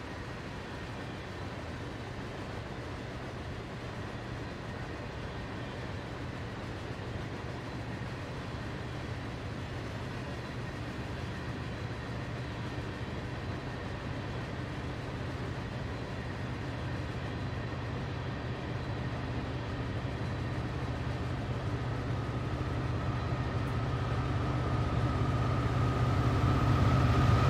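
Train wheels clatter rhythmically on the rails.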